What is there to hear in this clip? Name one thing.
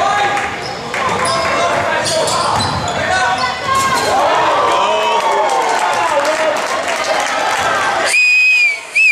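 A crowd cheers and shouts loudly in an echoing gym.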